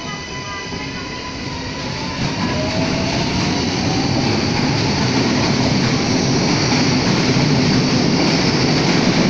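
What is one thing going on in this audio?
A subway train rumbles loudly past, growing louder as it speeds up.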